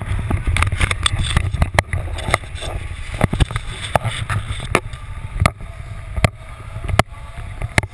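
Wind rushes and buffets loudly against a close microphone.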